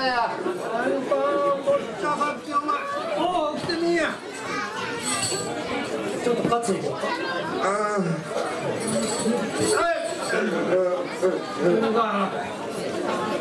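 A man speaks in a loud, dramatic chanting voice.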